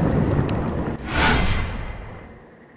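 A magical chime rings out as an item is collected.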